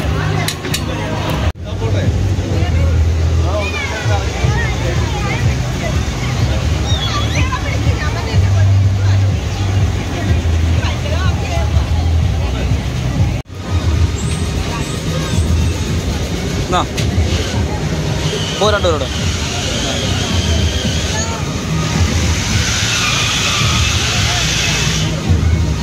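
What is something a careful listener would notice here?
A crowd of people chatters loudly outdoors.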